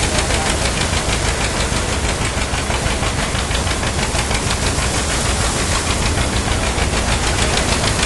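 An elderly man talks outdoors over the machine noise.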